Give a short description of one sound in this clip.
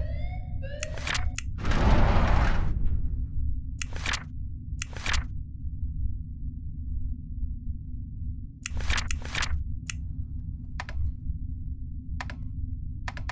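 Soft clicks sound several times.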